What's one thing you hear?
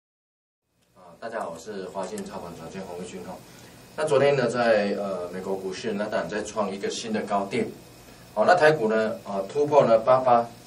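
A middle-aged man speaks calmly and steadily into a close microphone.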